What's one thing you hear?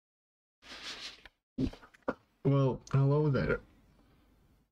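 A young man speaks with animation close to a microphone, his voice rising into a drawn-out exclamation.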